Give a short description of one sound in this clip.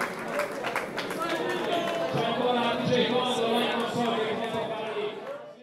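A crowd of men and women chatters and cheers nearby in an echoing room.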